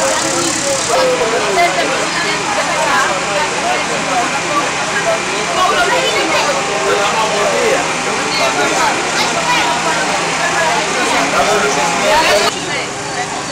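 Several men talk at once outdoors amid a busy crowd.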